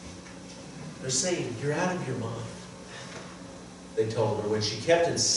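A middle-aged man speaks calmly through a microphone in a reverberant room.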